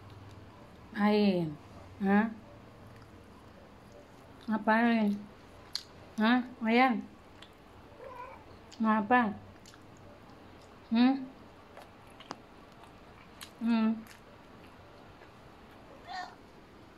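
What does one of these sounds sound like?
A domestic cat meows loudly several times.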